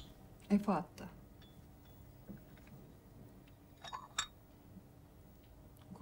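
A china cup clinks against a saucer.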